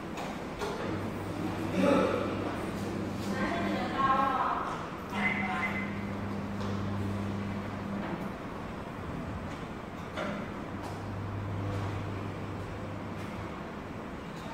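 A barrier gate arm whirs with a low motor hum as it swings up and down.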